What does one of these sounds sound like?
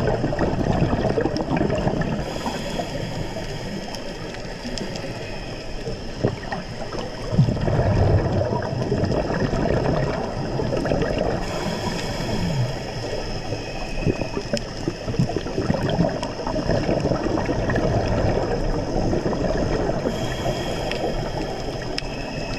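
Scuba breathing bubbles gurgle and rumble underwater.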